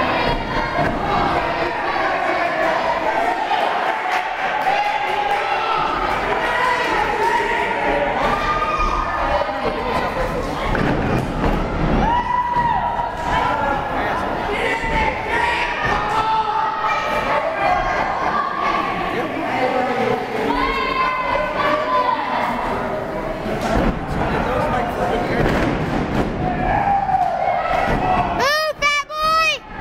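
A crowd cheers and shouts throughout a large echoing hall.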